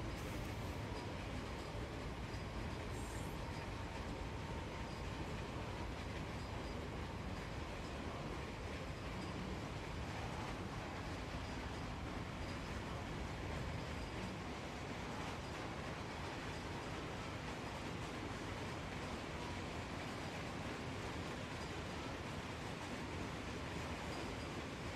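A freight train rumbles steadily past on the rails.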